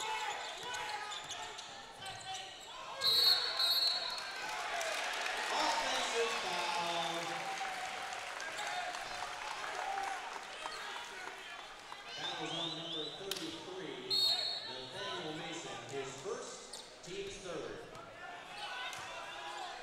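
A crowd in a large echoing gym cheers and murmurs.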